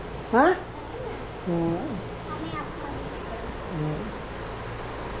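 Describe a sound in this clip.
A young child speaks softly nearby.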